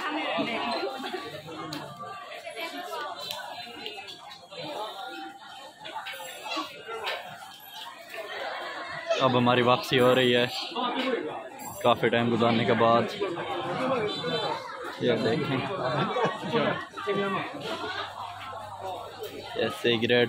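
A crowd of people chatters all around outdoors.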